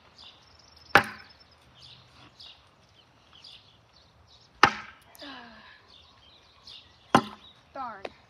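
Thrown objects strike a wooden board with sharp thuds.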